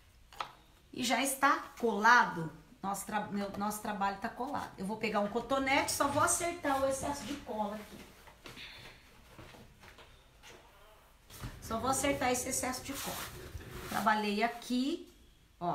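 A woman speaks calmly and close by.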